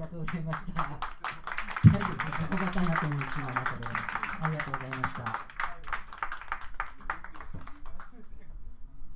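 An acoustic guitar is strummed in a steady rhythm.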